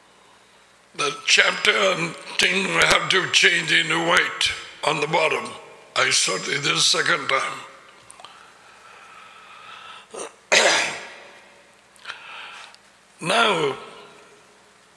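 An older man speaks with animation, close to a microphone.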